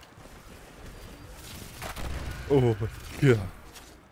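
A gun fires repeated shots.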